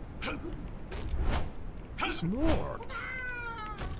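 Axe blows thud and clang in a fight.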